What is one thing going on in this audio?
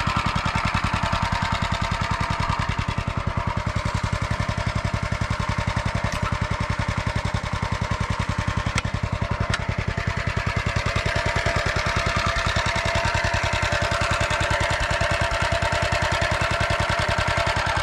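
A small engine chugs loudly and steadily close by.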